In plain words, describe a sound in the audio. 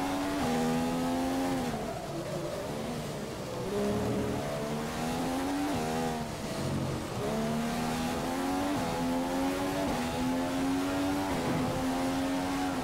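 A racing car engine whines high, dropping in pitch as it slows for a corner and then revving up again through quick gear changes.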